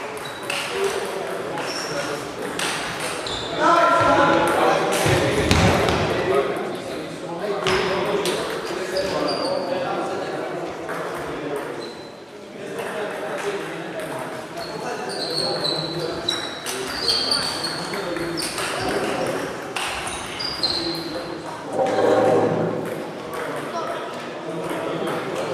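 Table tennis balls click sharply against paddles and tables in a large echoing hall.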